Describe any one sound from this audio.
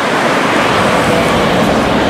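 A bus drives past close by with a loud engine roar.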